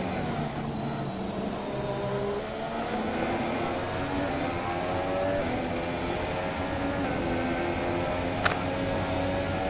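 A racing car engine screams at high revs, rising and dropping in pitch as it shifts gears.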